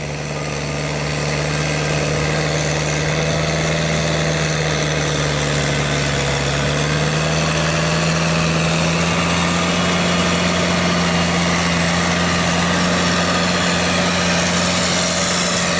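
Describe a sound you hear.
A tractor engine runs with a steady low drone close by.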